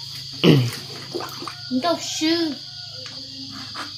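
Hands swish and rub through water in a pot.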